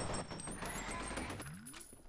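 A gun fires in quick bursts.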